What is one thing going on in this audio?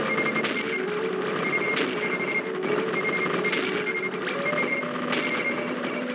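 Sharp electronic blasts burst out now and then.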